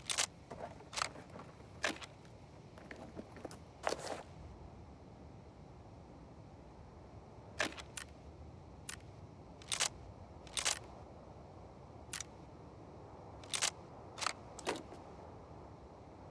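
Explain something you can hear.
Short clicks of a game menu sound again and again.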